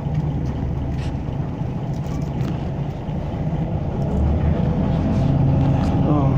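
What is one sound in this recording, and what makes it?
A diesel bus engine rumbles as the bus pulls away, heard from inside.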